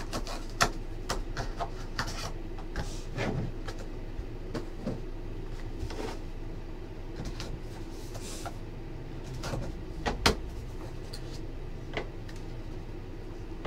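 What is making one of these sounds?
Cardboard packaging rustles and taps as hands open a box.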